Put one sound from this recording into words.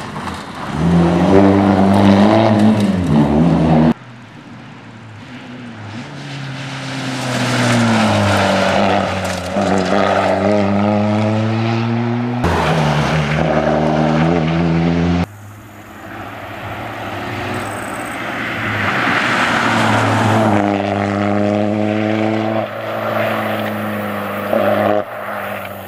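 A rally car engine screams at full throttle through the gears.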